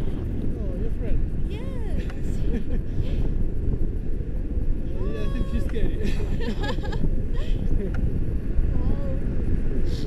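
A young woman laughs and squeals with excitement.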